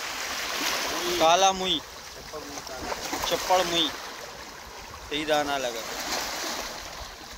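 An elderly man talks nearby in short bursts.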